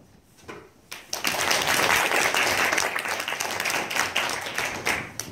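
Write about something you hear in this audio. A small ensemble starts playing loudly in an echoing room.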